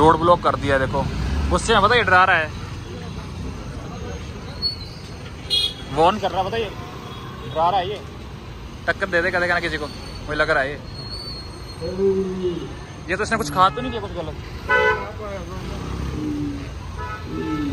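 Cars and motor scooters drive past along a busy street.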